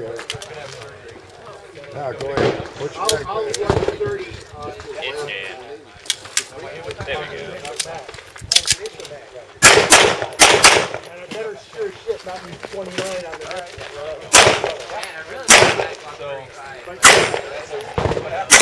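A handgun fires sharp shots outdoors.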